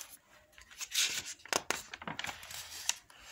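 Paper pages rustle as a notebook page is turned.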